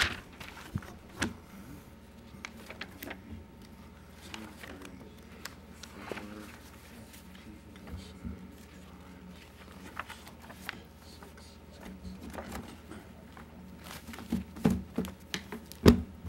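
A small audience murmurs quietly in a large room.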